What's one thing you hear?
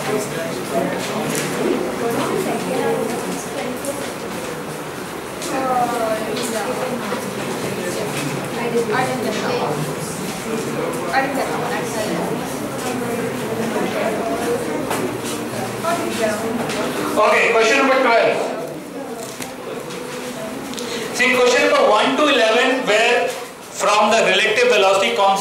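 A man speaks calmly into a headset microphone, as if lecturing.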